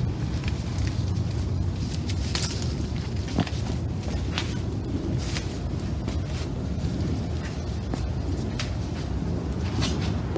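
Leaves rustle and branches shake as fruit is picked from a tree.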